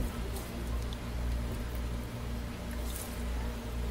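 Thick liquid pours into a mould.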